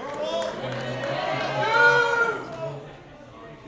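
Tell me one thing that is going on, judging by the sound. Young men cheer and shout excitedly through an online call.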